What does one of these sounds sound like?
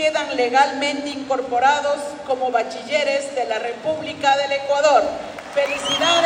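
A crowd sings together loudly in a large echoing hall.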